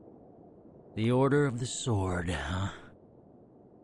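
A young man speaks briefly in a low, calm voice close by.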